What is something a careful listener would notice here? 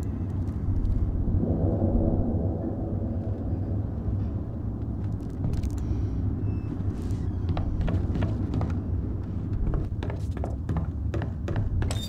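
Footsteps tread on creaky wooden boards.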